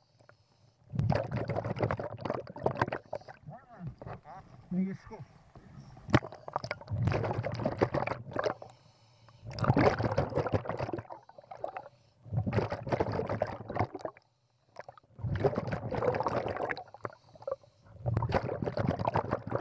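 Bubbles rush and gurgle in loud bursts as a diver breathes out underwater.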